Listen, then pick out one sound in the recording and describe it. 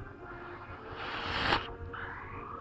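A game blast effect bursts loudly.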